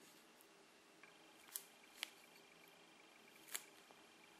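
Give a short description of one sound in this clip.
Small plastic parts click softly as they are handled close by.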